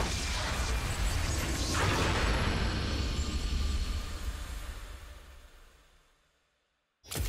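A game's music swells and fades out.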